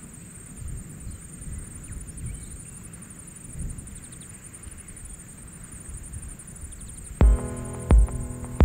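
Wind blows through dry grass outdoors.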